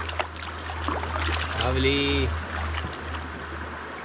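A man speaks close by, outdoors.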